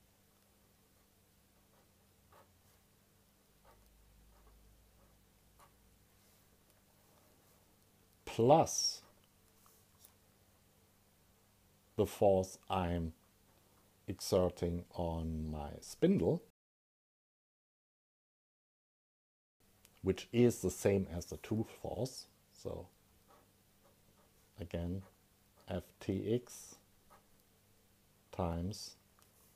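A felt-tip pen scratches softly across paper.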